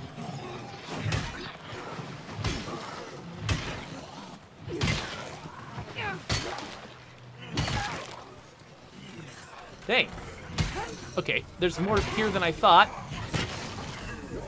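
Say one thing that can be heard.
Blunt blows thud during a fight.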